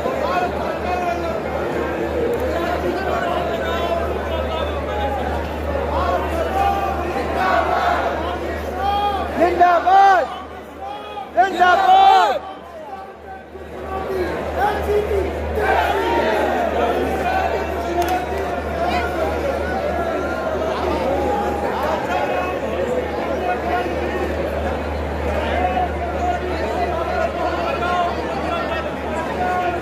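A large crowd chatters and cheers in a big open stadium.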